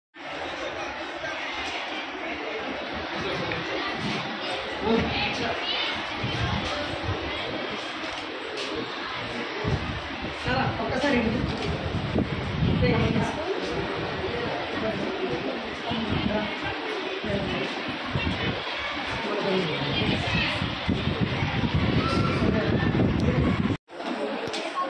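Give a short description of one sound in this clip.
Children chatter in a busy, echoing room.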